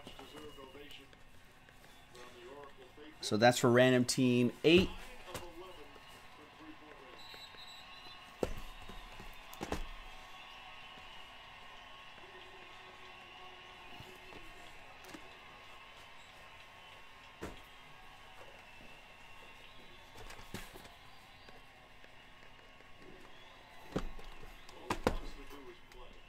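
Cardboard boxes knock and scrape as they are handled.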